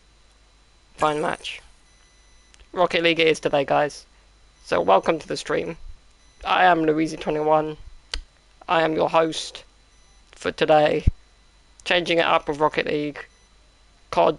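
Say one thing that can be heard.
A young man talks with animation into a headset microphone, in short bursts.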